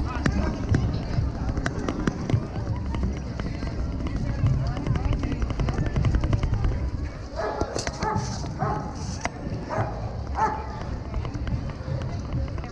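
Footsteps patter on pavement close by.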